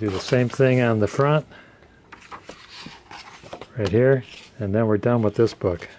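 A stiff book page flips over.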